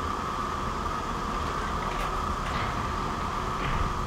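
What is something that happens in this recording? A heavy metal door slides open with a mechanical rumble.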